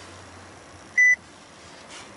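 A small electronic device beeps once.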